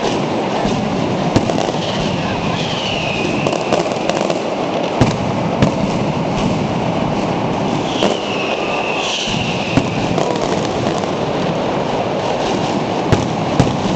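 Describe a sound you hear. Firecrackers crackle on the ground.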